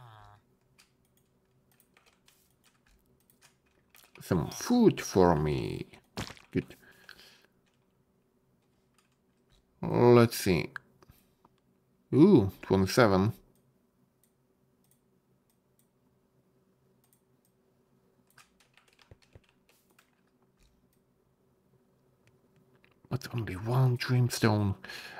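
Menu items click softly as they are moved.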